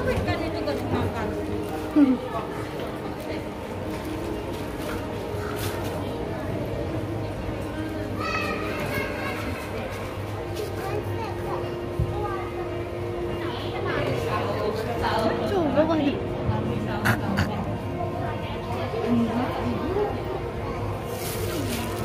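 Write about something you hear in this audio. A crowd of people chatters and murmurs nearby.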